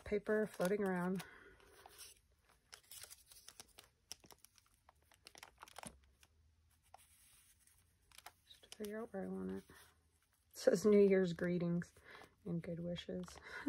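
Paper rustles and crinkles as hands press it flat.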